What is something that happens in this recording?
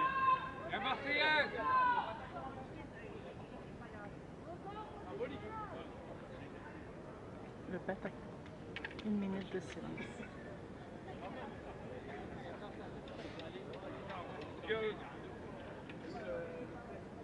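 A crowd of men and women chatter and call out nearby outdoors.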